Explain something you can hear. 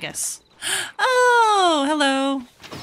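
A young woman exclaims in a drawn-out, rising and falling voice.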